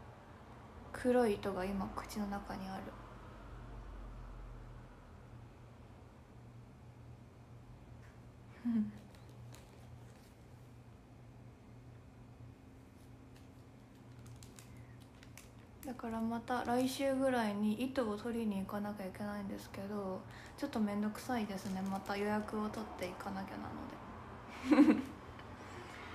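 A young woman speaks softly and casually into a close microphone, with pauses.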